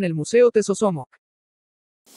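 A man speaks calmly, close by.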